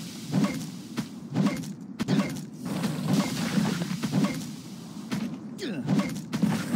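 A monster gurgles and growls.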